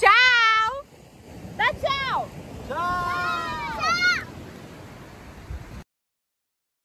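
Waves wash onto the shore.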